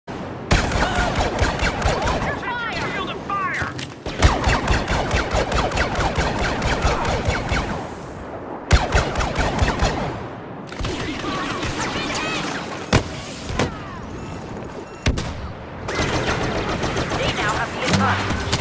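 Blaster guns fire rapid bursts of shots.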